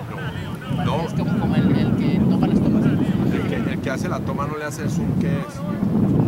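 Soccer players shout to each other across an open field.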